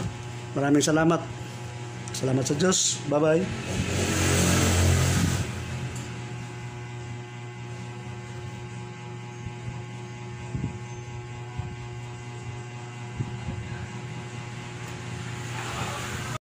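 A transformer hums steadily.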